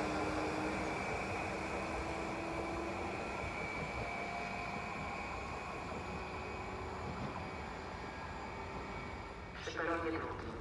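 An electric train hums and rolls away, slowly fading.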